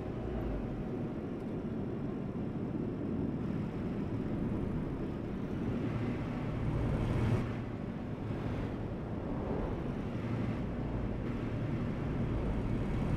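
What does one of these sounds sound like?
Tyres roll on the road.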